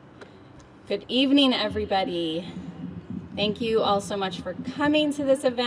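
A younger woman speaks warmly into a microphone.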